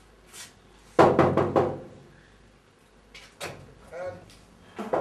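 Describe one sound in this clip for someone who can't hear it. A metal door rattles as a man pulls on it.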